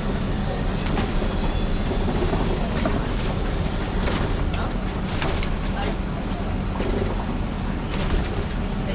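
Loose fittings rattle and clatter inside the bus.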